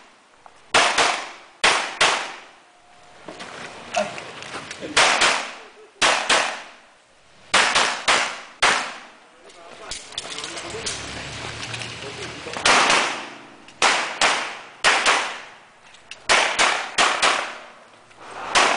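Pistol shots ring out in quick pairs and echo outdoors.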